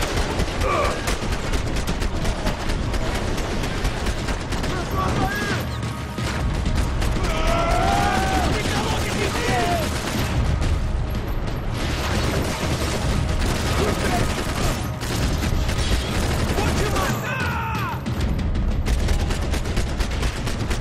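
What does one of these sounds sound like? Gunshots fire in rapid bursts, echoing through a large hall.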